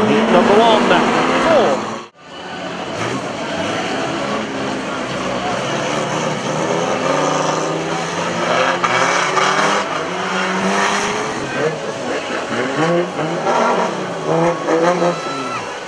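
Racing car engines idle and rev nearby.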